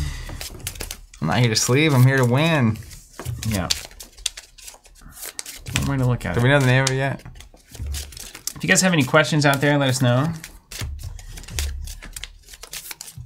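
Playing cards riffle and tap against a table.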